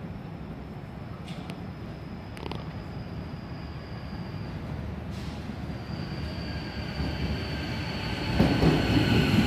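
A train approaches with a growing rumble.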